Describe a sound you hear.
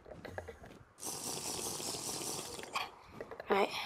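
A player character gulps down a drink.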